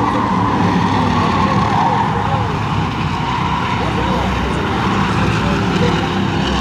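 Several race car engines roar loudly, close by.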